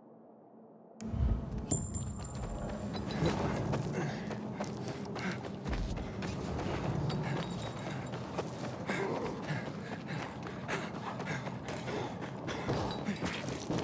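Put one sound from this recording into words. Footsteps run quickly over a rough street.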